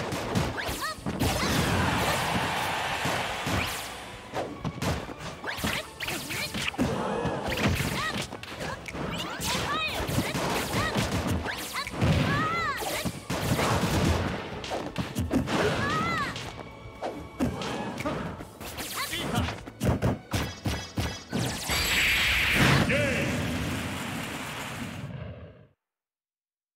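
Video game fighters trade blows with sharp, punchy hit sounds.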